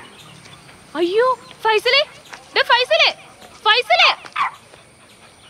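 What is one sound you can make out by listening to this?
A young woman calls out loudly in rising, sing-song cries.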